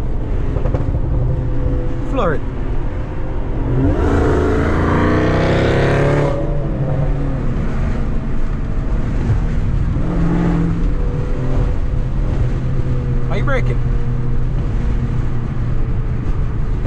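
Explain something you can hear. Tyres roll over the road with a low rumble.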